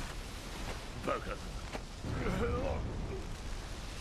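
A man speaks in a deep, menacing voice.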